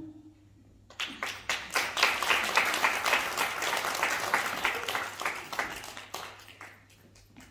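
A group of people clap their hands in applause.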